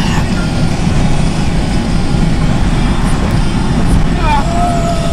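Tyres roll on a highway.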